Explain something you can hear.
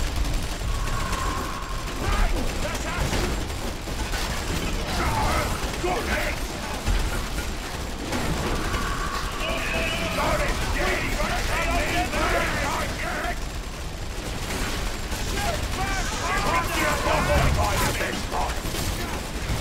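Guns fire and blasts boom in a battle.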